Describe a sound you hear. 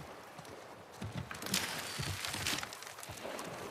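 Wooden hatch doors rattle and swing open.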